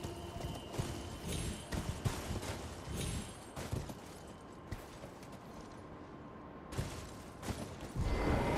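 A game character's footsteps scrape and thud on rock.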